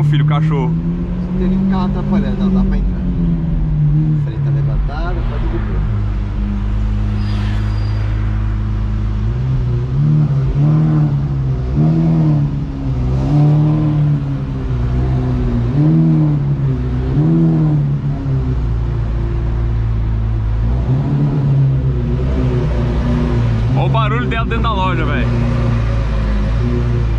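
A powerful car engine rumbles steadily at idle.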